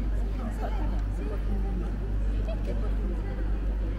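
A young woman talks and laughs softly close by.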